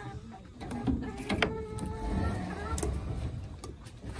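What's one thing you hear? A wooden latch knocks and rattles.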